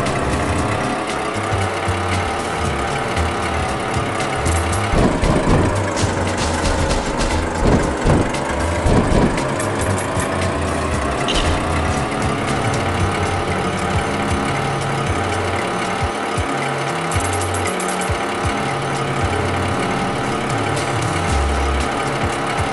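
A small car engine hums steadily.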